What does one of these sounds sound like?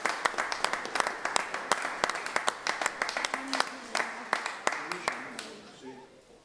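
A man claps his hands in a quick rhythm.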